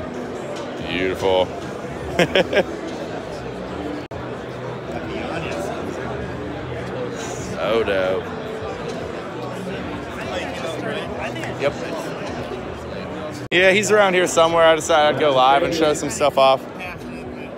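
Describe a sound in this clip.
A young man talks close by with animation.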